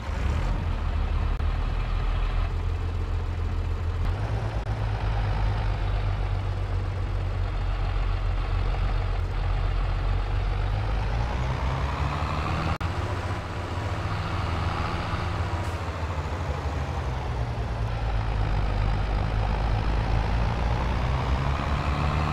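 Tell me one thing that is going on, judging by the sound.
A tractor engine rumbles steadily, its pitch rising and falling as it speeds up and slows down.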